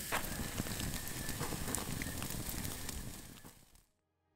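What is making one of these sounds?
A wood fire crackles and pops.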